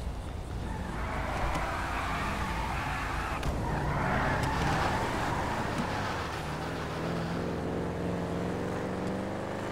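A car engine revs and the car drives off, speeding up.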